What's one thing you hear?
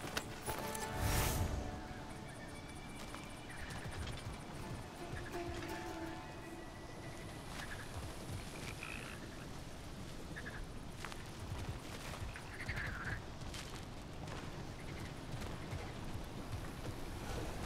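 Heavy footsteps crunch on sand and gravel.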